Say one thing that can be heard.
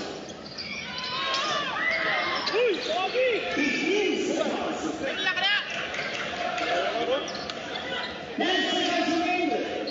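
A large crowd cheers and shouts in a big echoing gym.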